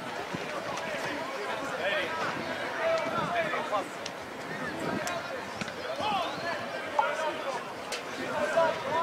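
Men shout and call out across an open outdoor field.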